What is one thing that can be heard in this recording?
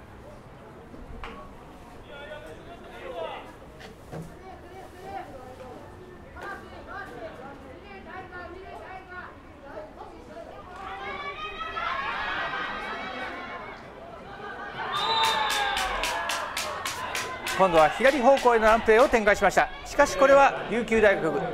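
A crowd of young men shouts and cheers outdoors, growing louder after a play.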